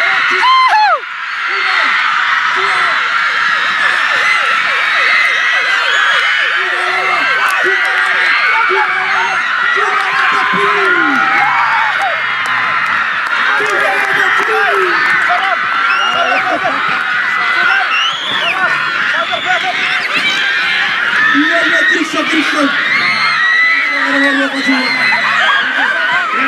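A large outdoor crowd chatters and cheers loudly.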